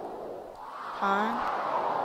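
A retro video game plays a short, rising electronic tone.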